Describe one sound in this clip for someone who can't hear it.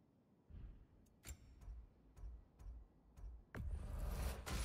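Short menu clicks tick several times.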